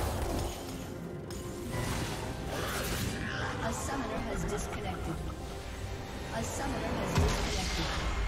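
Game spell effects and combat sounds crackle and clash.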